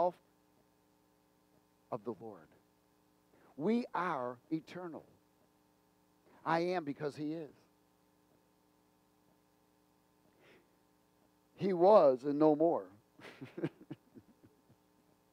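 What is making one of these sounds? A middle-aged man speaks with animation through a headset microphone, in short bursts with pauses.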